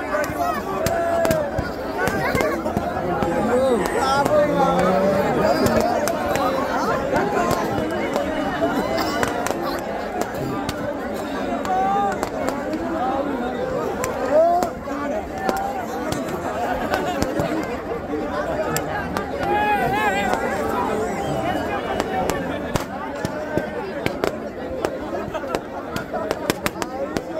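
A large bonfire crackles and roars.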